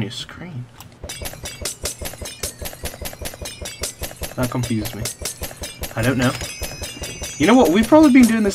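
Small chimes tinkle in quick succession.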